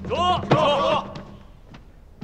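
Several men shout in unison with effort.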